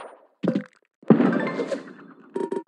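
A cheerful victory jingle plays with a popping burst.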